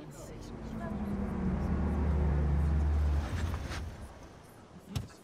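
A sports car engine rumbles as the car pulls up and stops.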